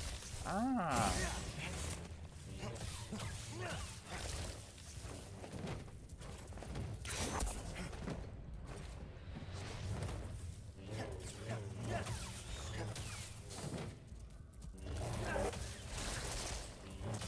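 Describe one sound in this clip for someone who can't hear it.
A lightsaber hums and clashes.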